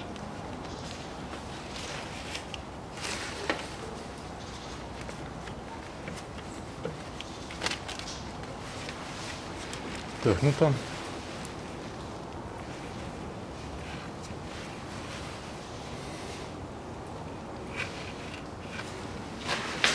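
Gloved hands rub and squeeze a plastic bottle.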